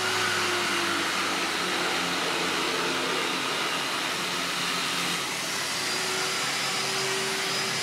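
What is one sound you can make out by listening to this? A parked truck's engine hums steadily nearby.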